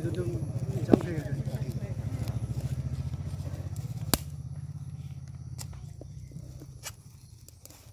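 Pliers snip and click against a plastic bottle.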